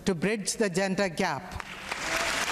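An elderly woman speaks warmly into a microphone.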